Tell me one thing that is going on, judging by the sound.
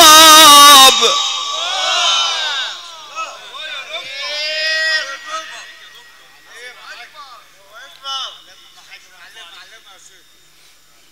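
Men in a crowd call out and murmur in response.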